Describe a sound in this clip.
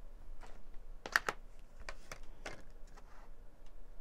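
A plastic case snaps open.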